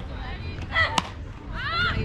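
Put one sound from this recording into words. A ball smacks into a catcher's mitt with a sharp pop.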